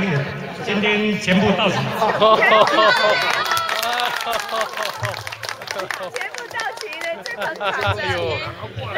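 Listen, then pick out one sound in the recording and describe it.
A small crowd of people chatter and laugh nearby.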